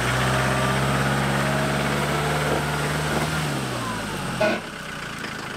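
An off-road vehicle's engine rumbles steadily, then slows and stops.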